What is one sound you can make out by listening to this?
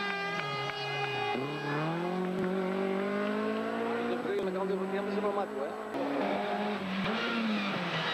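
A rally car engine revs hard and whines as the car races past.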